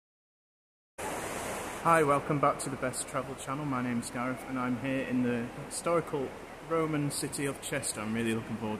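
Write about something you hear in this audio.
Water rushes over a weir.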